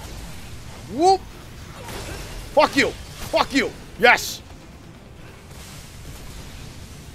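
Blades slash and whoosh in quick strikes.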